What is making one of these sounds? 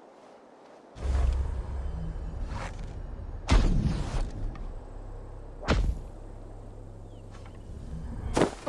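Footsteps run quickly over grass and earth.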